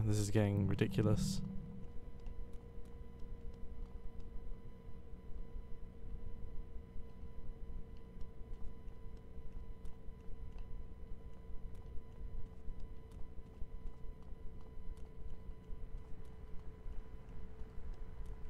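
Footsteps run across gravel.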